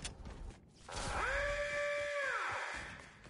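A video game teleport effect rings out with a bright, steady chime that fades away.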